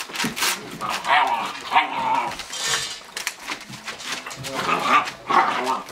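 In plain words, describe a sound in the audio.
Puppies' paws rustle and crinkle newspaper on the floor.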